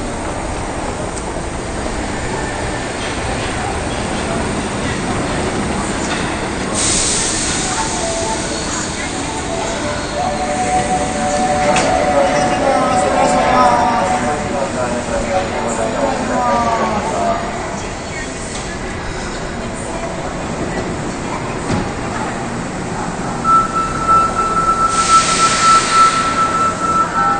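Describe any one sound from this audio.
A crowd of people murmurs in a busy echoing hall.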